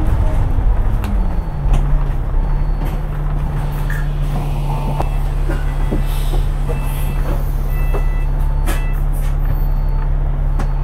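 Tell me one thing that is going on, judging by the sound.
A bus engine hums steadily, heard from on board.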